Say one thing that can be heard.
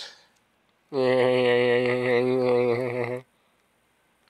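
A short bright game fanfare plays.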